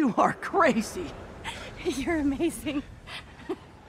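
A young woman speaks warmly and softly, close by.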